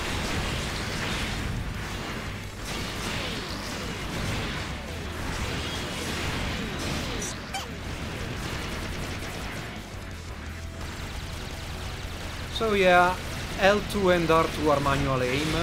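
Explosions and impacts crash loudly.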